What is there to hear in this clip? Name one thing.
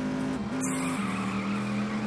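Tyres screech as a car skids through a turn.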